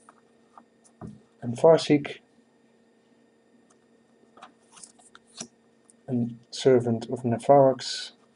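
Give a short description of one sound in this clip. Playing cards rub and tap together.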